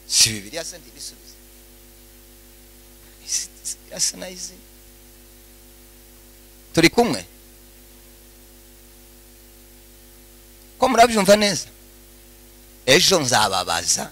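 A man preaches with animation through a microphone and loudspeakers, in short bursts with pauses.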